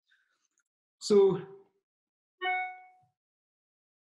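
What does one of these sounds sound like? A man speaks in short bursts over an online call.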